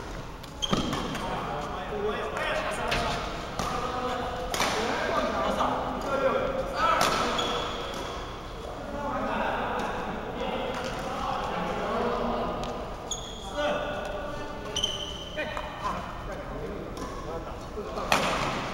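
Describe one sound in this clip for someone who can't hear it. Men and women call out and chatter in a large echoing hall.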